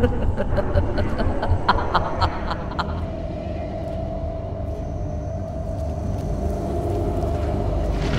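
An energy blade hums steadily.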